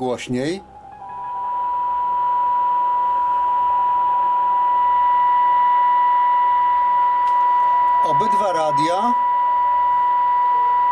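A radio gives off a steady, high beeping tone.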